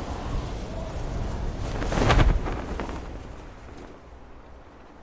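Wind rushes loudly and then fades.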